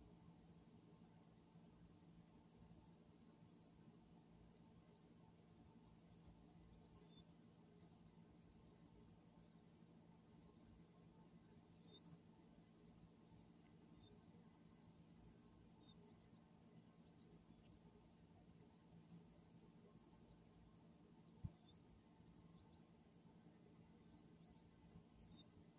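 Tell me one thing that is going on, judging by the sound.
An outdoor air conditioning unit hums steadily.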